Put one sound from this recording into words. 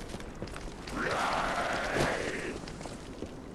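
A body rolls heavily across the ground.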